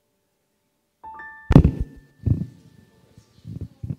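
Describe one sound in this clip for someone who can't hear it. A keyboard plays a few soft notes.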